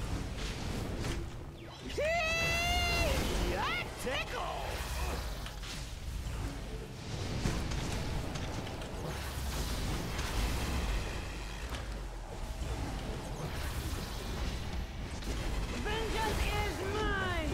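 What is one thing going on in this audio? Game fight effects crackle and blast with bursts of energy and explosions.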